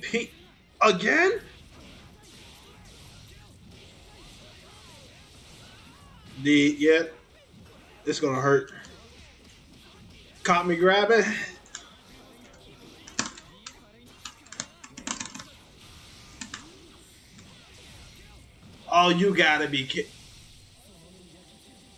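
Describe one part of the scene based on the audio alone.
Punches, kicks and energy blasts from a fighting game thump and crash in quick bursts.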